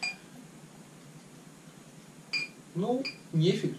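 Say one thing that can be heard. Beer pours from a bottle into a glass.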